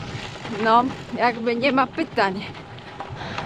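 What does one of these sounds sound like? A young woman speaks cheerfully, close to a microphone.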